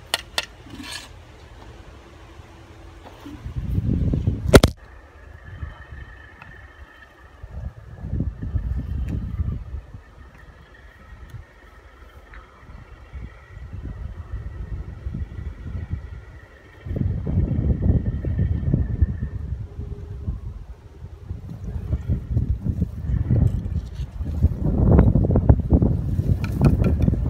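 Bricks clink and scrape as they are handled.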